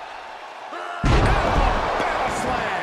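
A body slams heavily onto a wrestling mat with a loud thud.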